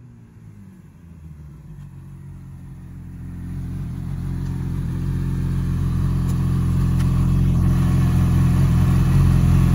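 A motorcycle engine rumbles steadily, growing louder.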